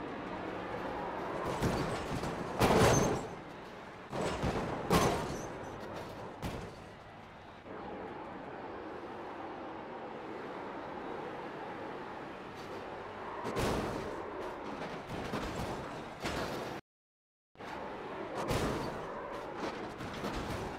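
Cars crash and scrape against a wall.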